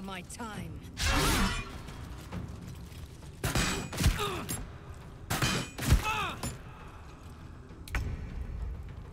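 Weapons strike and magic bursts in a fight, with loud thuds and whooshes.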